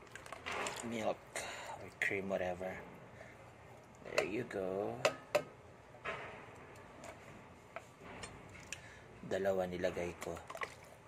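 Liquid pours softly into a pan of food.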